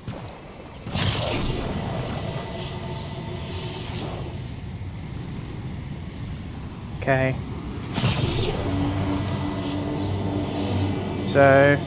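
A jet engine roars steadily as an aircraft speeds along.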